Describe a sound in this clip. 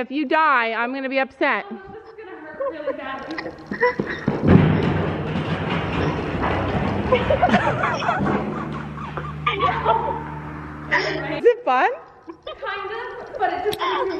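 A young woman talks and laughs with animation nearby.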